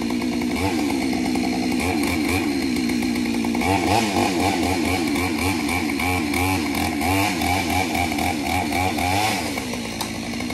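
A chainsaw revs and whines up in a tree.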